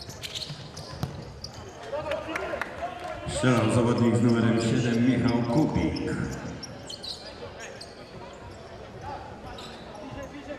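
A ball thuds as players kick it.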